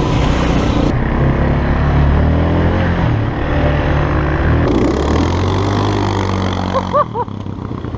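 A quad bike engine hums and rumbles up close.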